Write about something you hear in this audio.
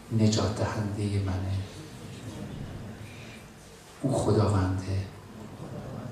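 A man speaks intensely into a microphone, heard through loudspeakers in an echoing room.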